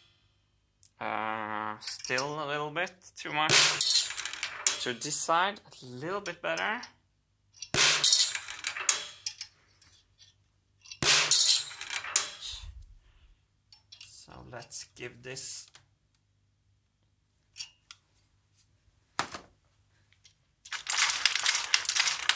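Metal parts clink and rattle as they are handled.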